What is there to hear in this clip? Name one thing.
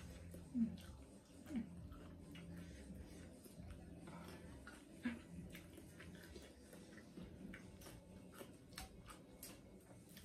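A young woman chews food with wet, crisp sounds.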